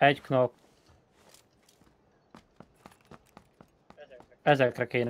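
Footsteps crunch on dry ground.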